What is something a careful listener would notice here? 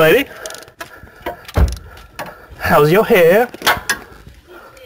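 A ratchet wrench clicks as it turns a bolt.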